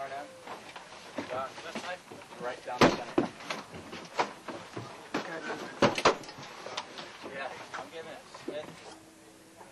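Metal gear clanks and rattles as soldiers move about.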